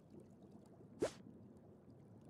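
A menu click sounds once.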